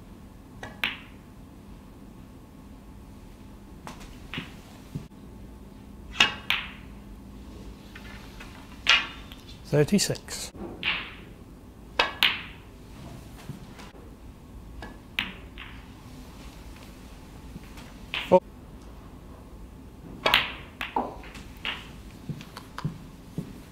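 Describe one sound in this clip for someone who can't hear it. Snooker balls knock against each other and clack.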